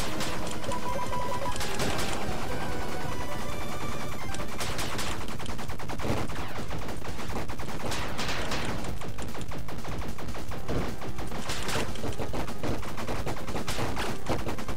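Video game music plays steadily.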